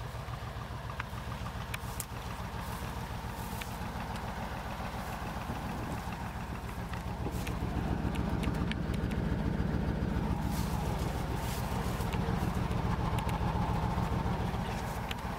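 Muddy tyres churn slowly through wet ground.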